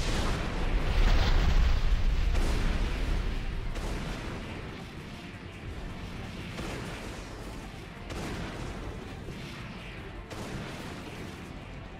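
Jet thrusters roar loudly, then ease to a steady rush.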